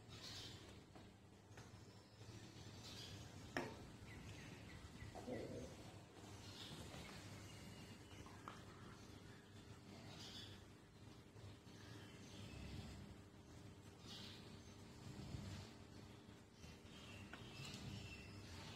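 A small brush taps and scrapes in a paint pot.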